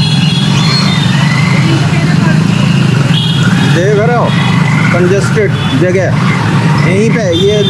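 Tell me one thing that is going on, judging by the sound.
Motorbikes and scooters ride by on a busy street.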